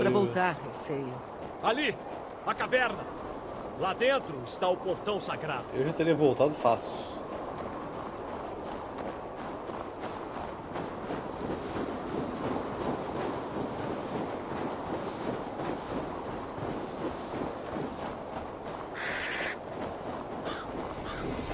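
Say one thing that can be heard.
Wind howls steadily outdoors in a snowstorm.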